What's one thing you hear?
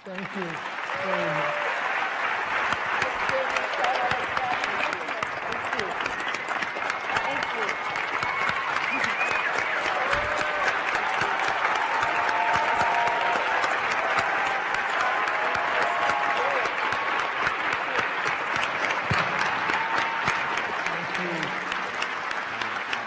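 Audience members cheer and whoop.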